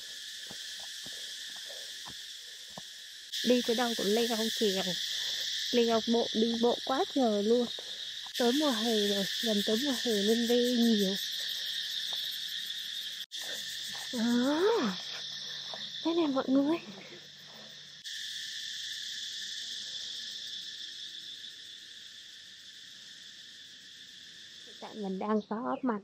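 Cicadas drone loudly and steadily in the trees.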